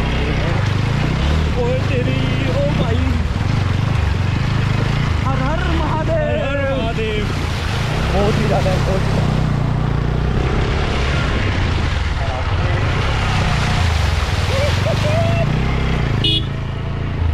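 Water splashes and churns under motorcycle tyres.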